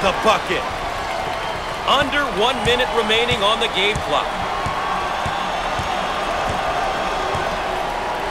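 A basketball bounces on a hardwood floor in a steady dribble.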